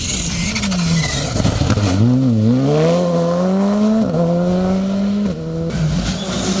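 A rally car engine roars and revs hard as the car speeds past and away.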